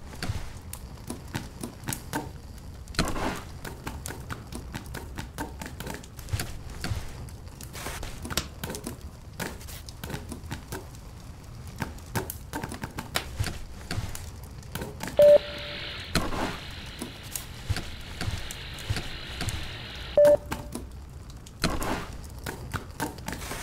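Small footsteps patter quickly across metal floors.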